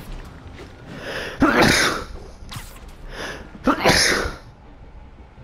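Air whooshes in loud bursts as a figure swings through the air on a line.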